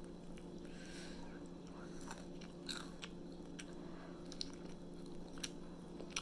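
A young man chews food noisily.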